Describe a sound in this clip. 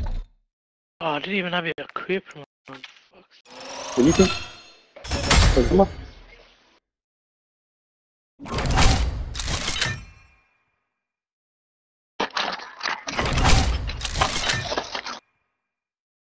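Electronic whooshes and chimes sound in short bursts.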